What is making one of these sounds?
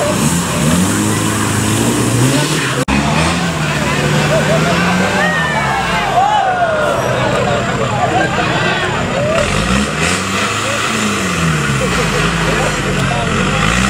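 A crowd of people talk and call out nearby.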